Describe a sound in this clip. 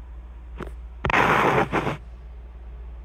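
A phone bumps and scrapes against a hard surface close by.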